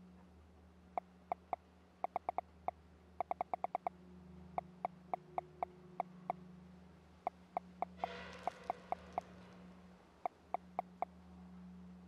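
Soft menu clicks tick rapidly, in bursts.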